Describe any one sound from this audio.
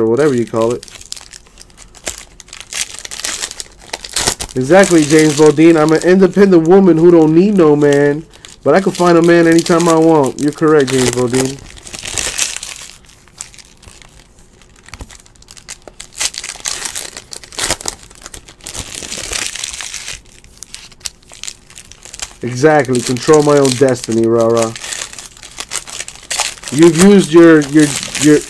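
Foil wrappers crinkle and tear as packs are opened.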